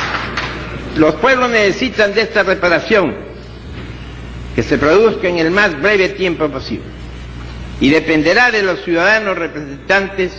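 An elderly man reads out a speech into a microphone.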